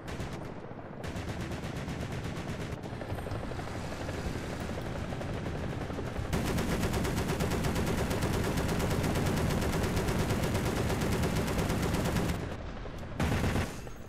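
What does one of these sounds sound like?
A tank engine rumbles steadily close by.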